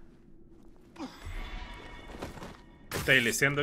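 A sudden burst of a scuffle and a blade strike sounds out.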